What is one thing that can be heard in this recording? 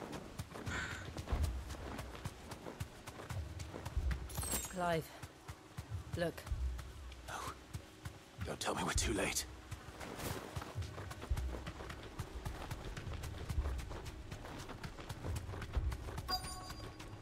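Heavy footfalls of a large running animal thud steadily on soft ground.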